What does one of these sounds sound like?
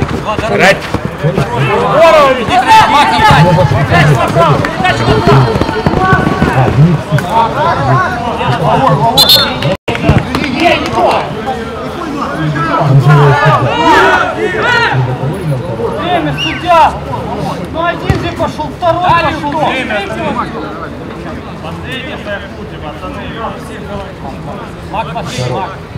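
Men shout and call out to each other across an open outdoor pitch.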